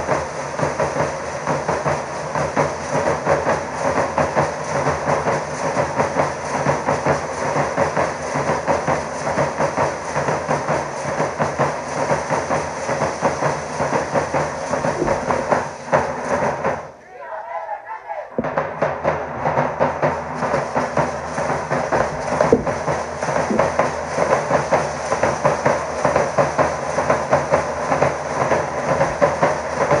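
Drums pound in a steady, fast rhythm outdoors.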